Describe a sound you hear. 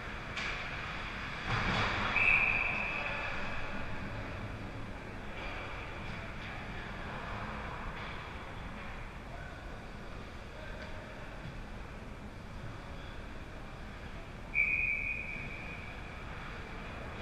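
Skates scrape across ice in a large echoing rink.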